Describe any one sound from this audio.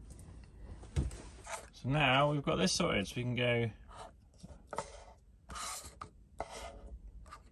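A small plastic device taps and slides on a wooden table.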